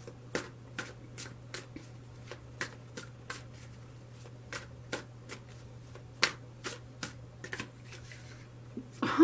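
Playing cards riffle and snap as they are shuffled.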